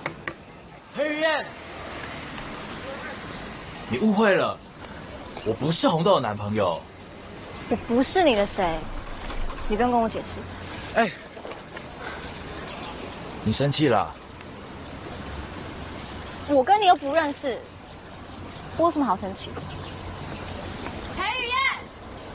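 A young woman speaks tensely nearby.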